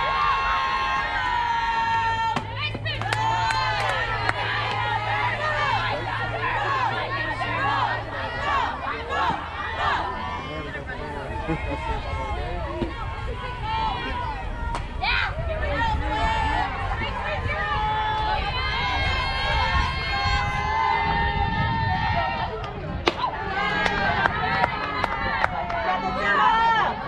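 Young girls cheer and chant with high voices nearby.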